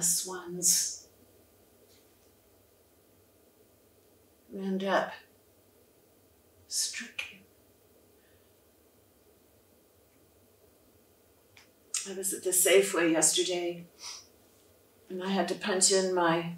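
An elderly woman speaks expressively in short bursts with pauses, close by.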